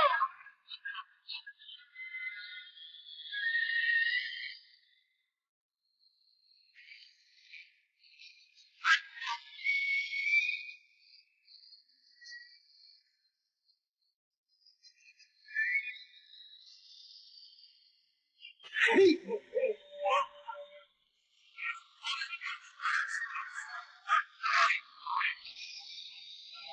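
A dog barks and snarls fiercely.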